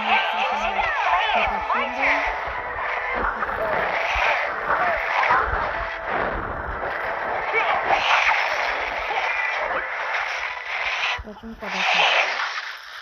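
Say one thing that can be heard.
Swords clash and magic blasts crackle in a game battle.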